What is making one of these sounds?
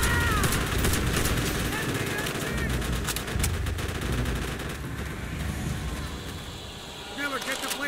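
Explosions rumble deeply nearby.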